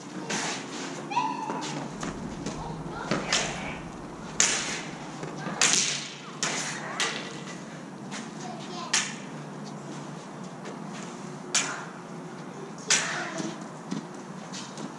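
Plastic blades clack against each other in an echoing hall.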